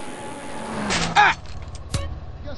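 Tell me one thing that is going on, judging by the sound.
A body thuds onto the road.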